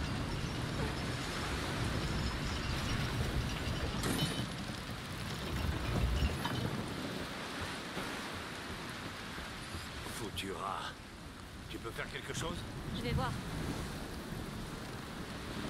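Stormy sea waves surge and crash.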